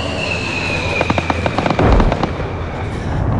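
Rockets launch in a rapid crackling series of blasts.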